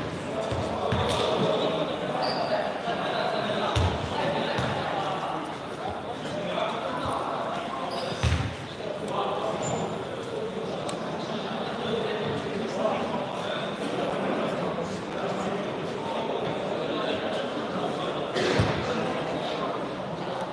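Sneakers squeak on a hard floor.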